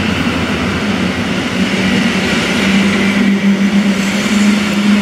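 An electric train rushes past close by with a loud, steady rumble and hum.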